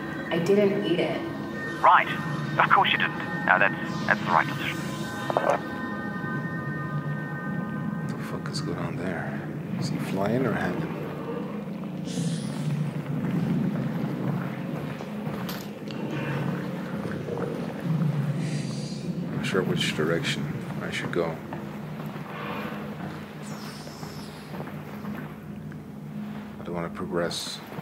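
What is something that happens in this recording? A young man talks steadily into a close microphone.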